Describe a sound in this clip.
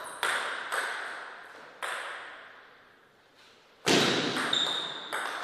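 A table tennis ball clicks sharply off paddles and the table, ringing in an echoing hall.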